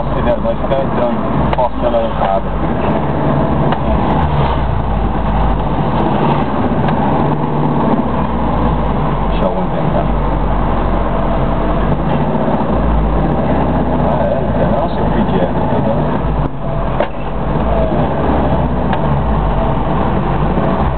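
A car engine rumbles in slow traffic, heard from inside the car.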